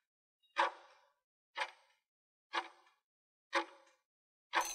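A timer ticks once a second.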